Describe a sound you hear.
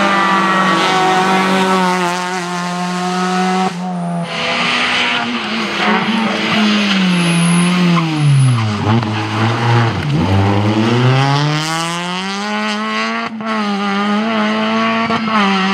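A rally car engine roars and revs hard as cars speed past.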